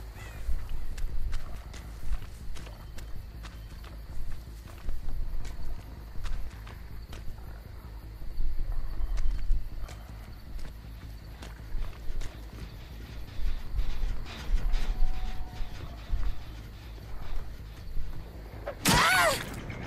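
Heavy footsteps thud steadily across the ground and wooden boards.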